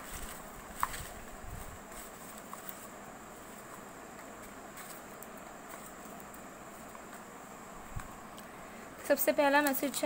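Paper slips rustle and crinkle as hands rummage through a box.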